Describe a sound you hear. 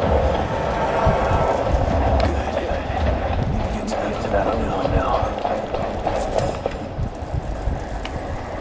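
A man talks into a microphone in a calm voice.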